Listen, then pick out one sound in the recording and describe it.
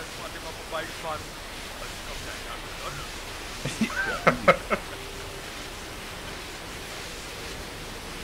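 A fire hose sprays water in a steady hiss.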